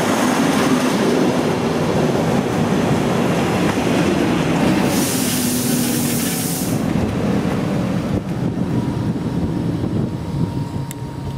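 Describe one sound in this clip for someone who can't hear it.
An electric passenger train rolls into a station and slows to a stop.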